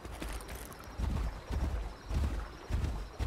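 Heavy footsteps thud on rocky ground.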